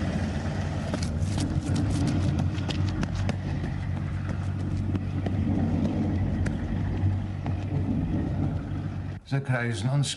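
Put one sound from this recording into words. Footsteps run quickly on a road.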